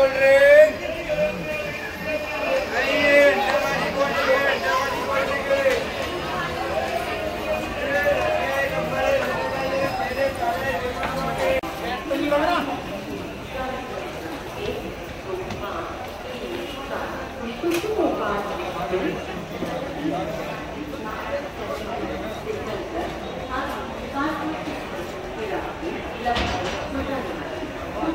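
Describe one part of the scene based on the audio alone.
A crowd of people chatter all around in a large echoing hall.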